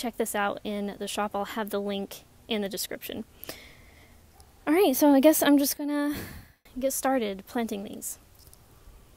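A young woman speaks calmly into a clip-on microphone close by.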